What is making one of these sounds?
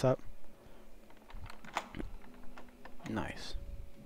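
A padlock clicks open.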